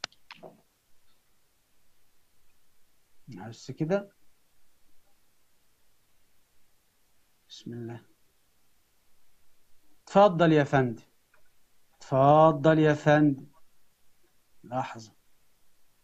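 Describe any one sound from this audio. A young man speaks in short phrases with long pauses, heard through a small speaker.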